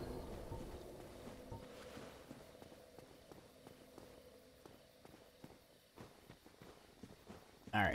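An armoured knight's footsteps clank and scrape on stone.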